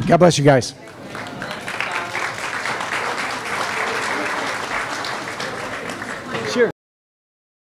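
A crowd of people murmurs and chatters.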